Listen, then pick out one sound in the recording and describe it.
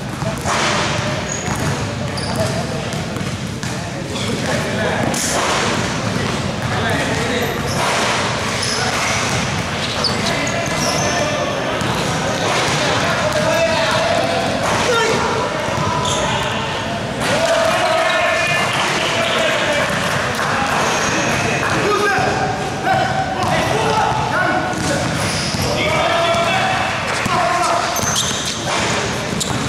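Young men shout and call out across an echoing hall.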